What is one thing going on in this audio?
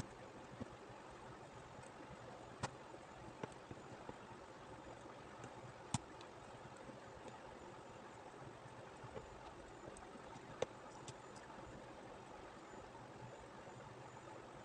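An aari hook needle punches through taut fabric with soft clicks.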